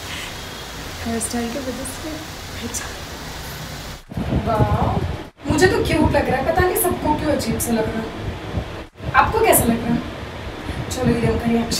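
A young woman talks with animation, close to a phone's microphone.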